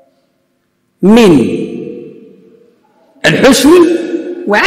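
A man speaks with emphasis into a microphone in a reverberant hall.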